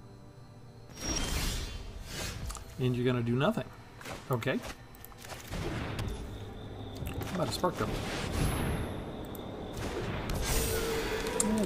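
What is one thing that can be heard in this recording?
Digital game effects whoosh and chime as cards are played.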